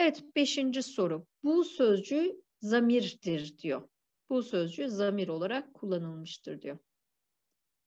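A woman speaks calmly through a microphone, as on an online lesson.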